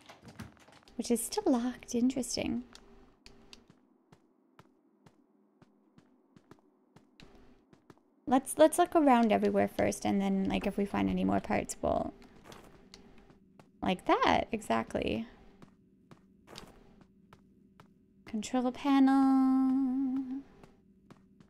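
A young woman speaks with animation and laughs into a close microphone.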